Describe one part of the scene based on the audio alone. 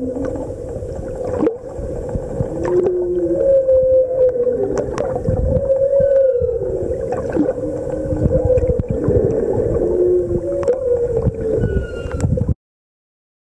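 A whale calls underwater with low, wavering moans and whistles.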